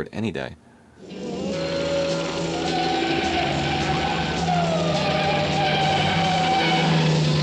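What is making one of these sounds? A car engine roars as a car speeds along a road.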